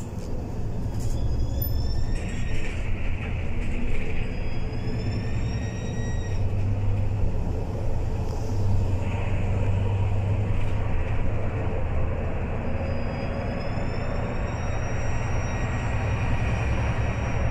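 A bus engine whines, rising in pitch as the bus speeds up.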